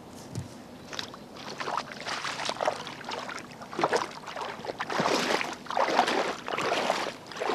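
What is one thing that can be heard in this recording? Boots splash and slosh through shallow water close by.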